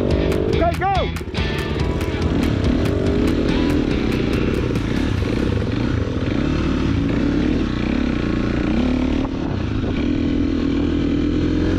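A dirt bike engine revs and putters up close.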